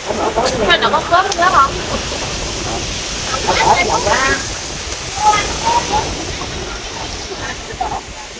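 Women chat and laugh nearby.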